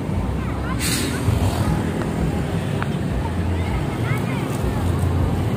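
Traffic rumbles steadily along a busy road.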